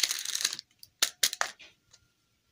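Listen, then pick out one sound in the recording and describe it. Plastic capsule halves click and tap together.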